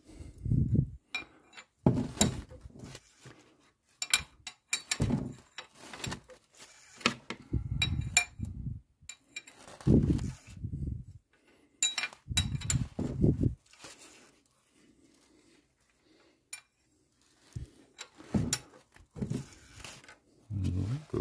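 A wrench clicks and scrapes on metal as a bolt is turned.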